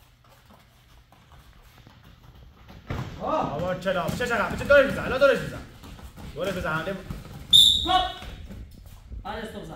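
Gloves thud against each other as two boys spar.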